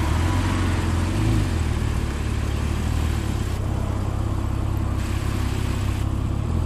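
Tyres roll slowly over asphalt.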